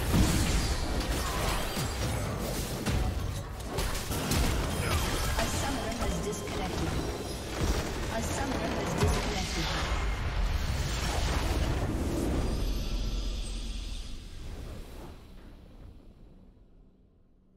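Video game spell blasts and a large crumbling explosion ring out, then fade away.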